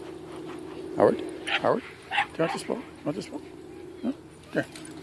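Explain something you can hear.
A small dog yaps and growls playfully close by.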